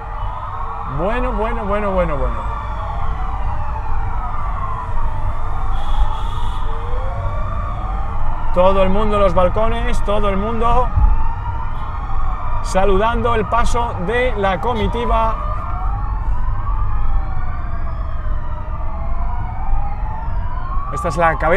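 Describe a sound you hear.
A police siren gives quick, warbling yelps in short bursts.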